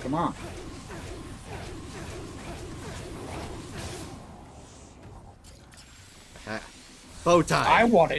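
Magic blasts crackle and whoosh in quick bursts.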